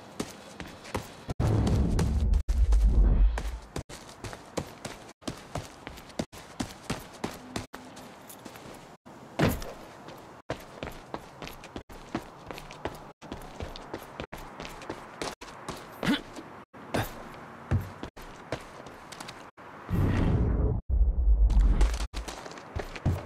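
Footsteps run quickly through grass and over pavement.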